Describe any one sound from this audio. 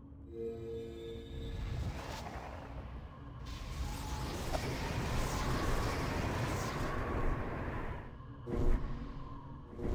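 Lightning spells crackle and crash loudly.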